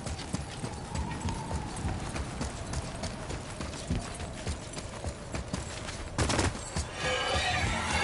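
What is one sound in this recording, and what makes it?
Heavy footsteps crunch quickly over snow and stone.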